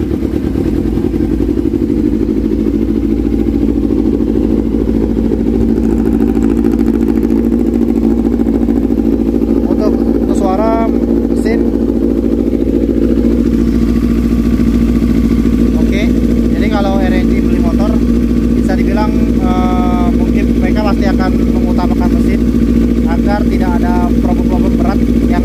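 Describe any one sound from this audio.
A motorcycle engine idles steadily nearby.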